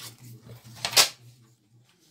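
A strip of paper is tapped down on a table.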